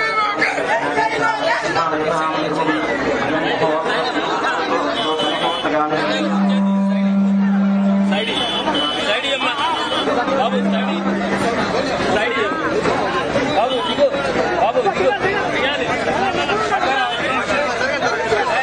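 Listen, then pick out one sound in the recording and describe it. A large crowd of men and women shouts and cheers close by.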